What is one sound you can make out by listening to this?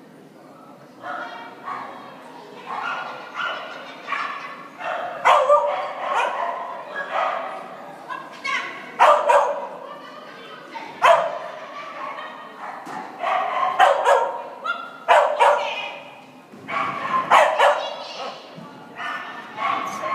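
A woman calls out short commands loudly in a large echoing hall.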